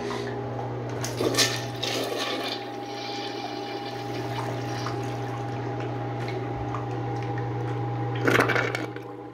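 A toilet flushes with rushing, swirling water.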